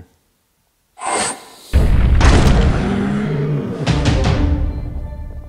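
A heavy blast booms loudly.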